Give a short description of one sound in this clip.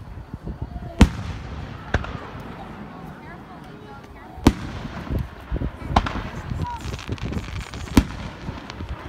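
Fireworks burst with loud, sharp booms in the distance.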